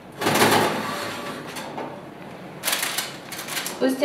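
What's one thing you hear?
A loaf of bread scrapes across a metal oven rack.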